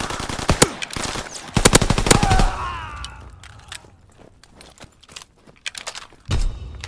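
Gunfire rings out in sharp bursts.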